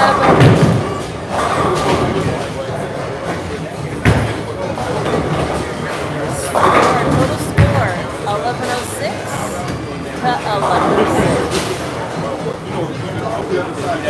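Bowling balls rumble down lanes.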